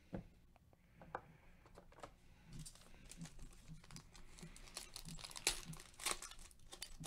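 Gloved hands handle and crinkle foil wrappers.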